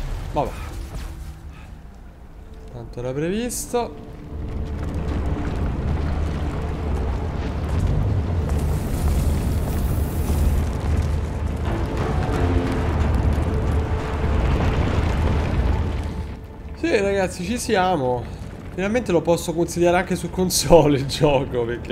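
A young man talks close to a microphone with animation.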